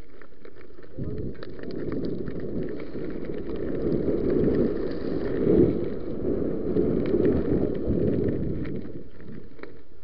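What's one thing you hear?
Wind buffets the microphone in loud gusts.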